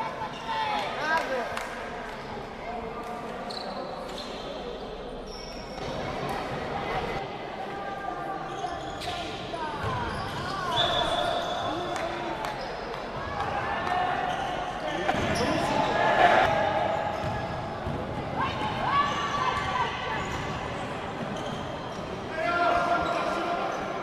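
A crowd of spectators murmurs and calls out in an echoing hall.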